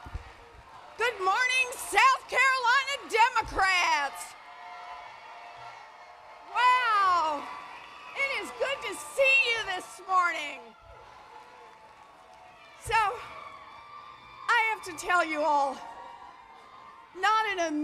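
A woman speaks forcefully into a microphone, heard through loudspeakers in a large echoing hall.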